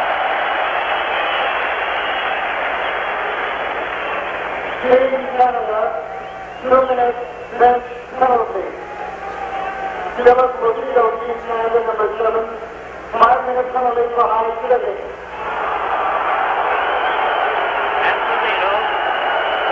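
A large crowd roars and murmurs in a big echoing arena.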